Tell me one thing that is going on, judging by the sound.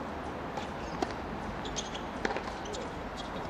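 A tennis ball bounces on a hard court before a serve.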